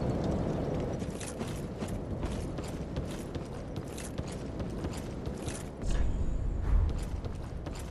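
Armoured footsteps clank on wooden planks.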